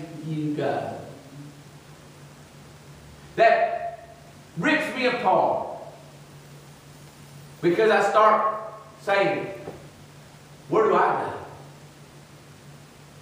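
A man preaches through a microphone in short, forceful bursts with pauses between them.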